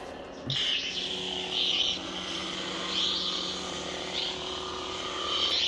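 A toy lightsaber hums steadily with a buzzing electronic tone.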